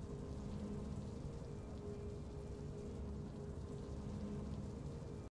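Triumphant game music plays with a steady, low sustained chord.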